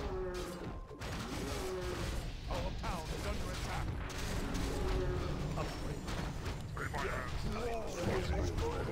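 Swords clash and strike repeatedly in a busy fight.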